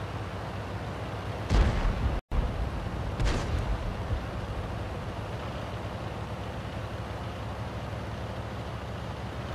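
A tank's engine rumbles as the tank drives along.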